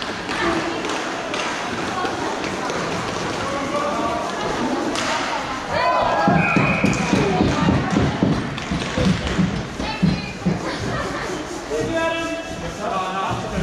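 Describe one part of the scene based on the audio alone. Players shout and call out to each other in an echoing hall.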